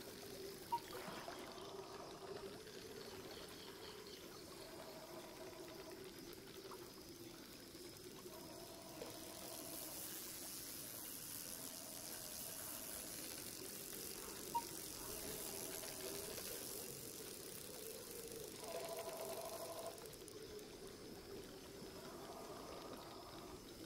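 A fishing reel whirs in short bursts as line is wound in.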